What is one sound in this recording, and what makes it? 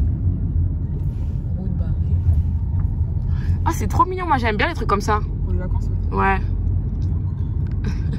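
A car engine hums low and steady as the car drives slowly.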